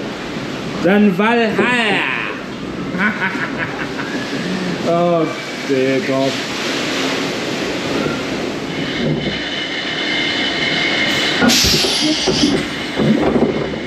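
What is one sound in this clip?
A roller coaster car rattles and rumbles along its track.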